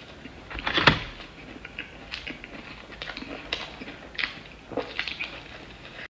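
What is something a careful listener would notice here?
A young woman chews and crunches food close to a microphone.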